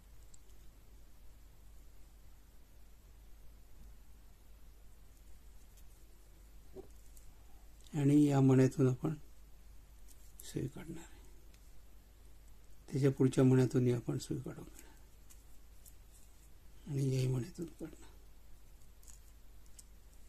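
Small beads click softly as they are threaded onto wire.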